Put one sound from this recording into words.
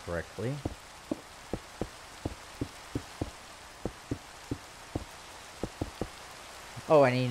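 Stone blocks click into place in a video game.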